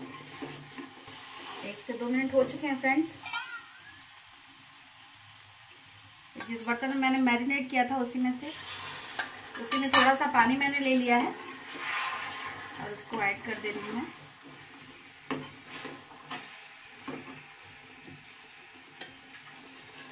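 A metal spatula scrapes and stirs food in a pan.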